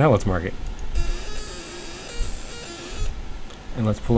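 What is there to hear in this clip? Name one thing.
A laser marker buzzes with a steady high hiss.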